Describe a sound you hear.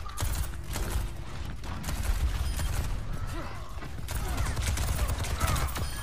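Rapid gunfire rattles.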